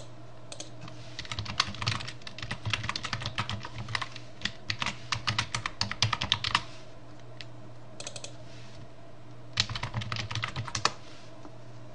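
A keyboard clatters with quick key presses.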